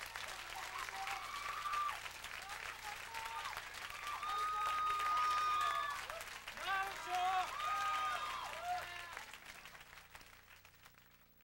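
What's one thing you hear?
A large crowd cheers and applauds, then fades away.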